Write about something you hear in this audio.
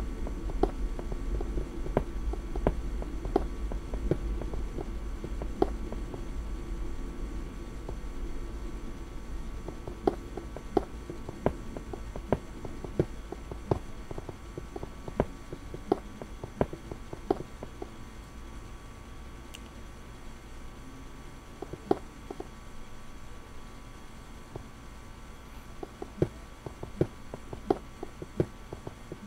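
Blocks crack and break with sharp clicks as a pickaxe digs.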